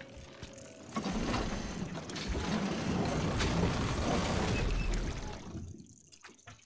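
A wooden crank creaks and grinds as it is turned.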